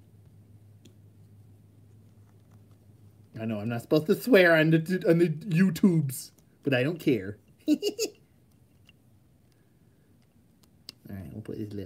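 Small plastic toy parts click and snap together.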